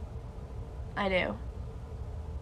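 A young woman close by lets out a short, falling whine.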